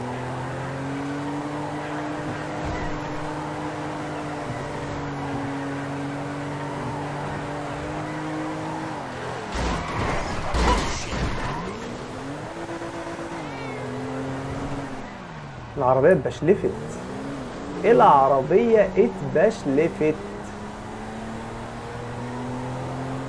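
A car engine hums steadily and rises and falls in pitch.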